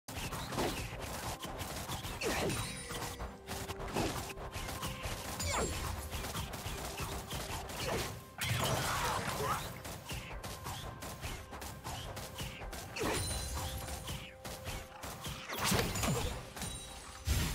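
Magic spells whoosh and crackle in a video game battle.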